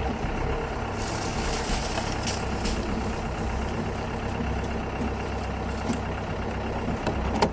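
Leafy branches brush and scrape against the vehicle.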